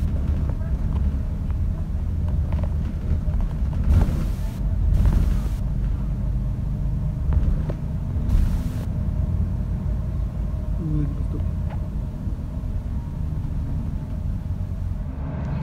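Windows and fittings rattle as the bus drives along.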